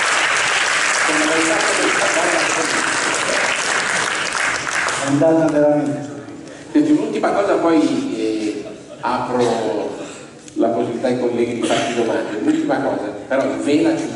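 A man speaks with animation into a microphone, heard over loudspeakers in an echoing hall.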